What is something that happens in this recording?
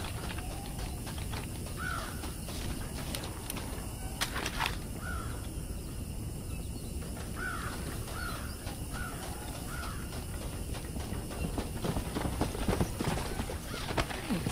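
Footsteps run on dry dirt.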